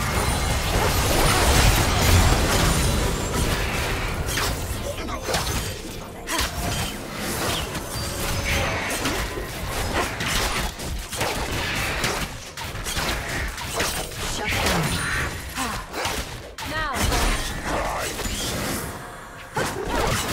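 Game spell effects crackle and clash in a fight.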